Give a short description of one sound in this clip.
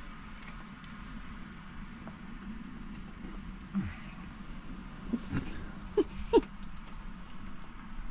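A man chews and eats a sandwich.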